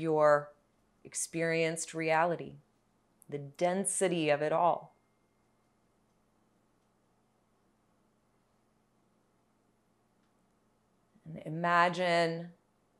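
A young woman speaks calmly and softly, close by, with pauses between phrases.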